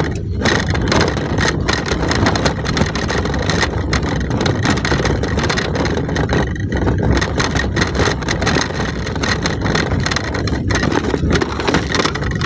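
Tyres crunch and rattle over a rough dirt road.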